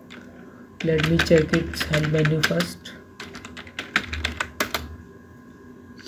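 Keys clatter on a computer keyboard in short bursts of typing.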